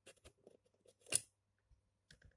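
A plastic door snaps open.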